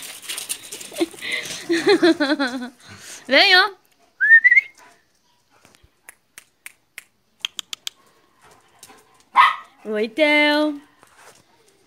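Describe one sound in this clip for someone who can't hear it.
A dog barks and yelps excitedly nearby.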